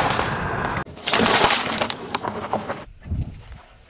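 Small beads scatter and patter across the ground.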